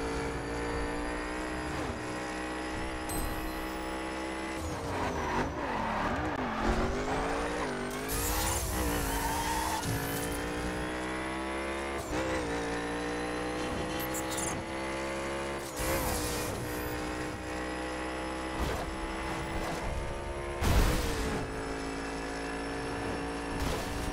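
A race car engine roars loudly at high revs.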